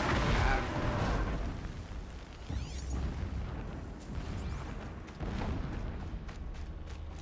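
Leaves and grass rustle as someone creeps through dense undergrowth.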